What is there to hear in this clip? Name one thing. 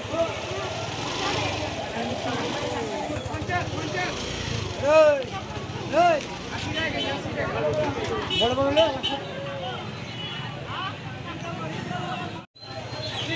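Voices of a market crowd chatter outdoors.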